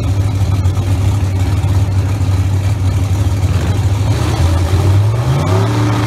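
A race car engine idles with a loud, deep rumble.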